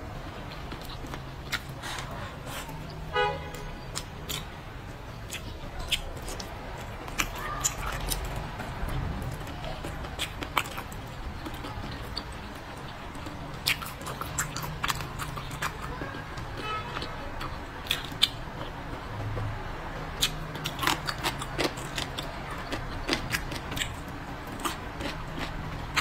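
A young woman chews food noisily, close to a microphone.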